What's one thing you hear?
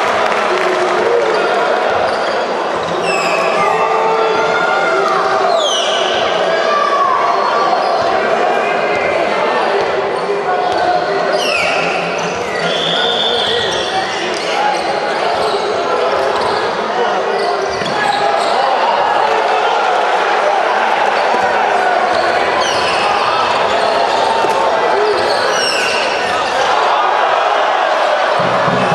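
A basketball thuds as it is dribbled on the floor.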